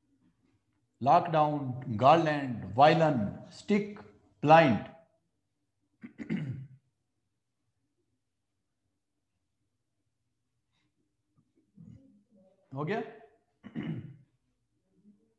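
A middle-aged man speaks clearly and with emphasis, close by, in short bursts with pauses.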